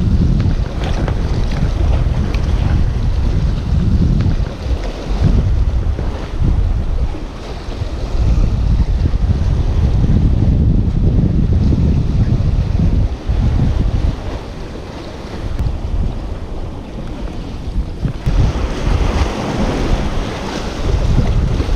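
Waves splash against rocks close by.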